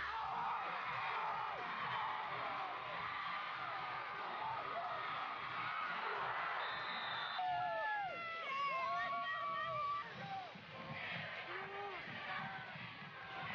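A crowd cheers and roars outdoors.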